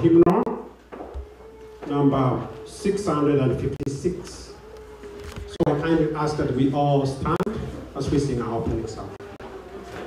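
A man speaks loudly close by in a large echoing hall.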